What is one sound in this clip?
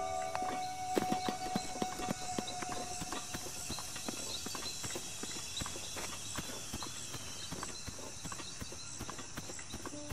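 Footsteps thud on grass as a game character runs.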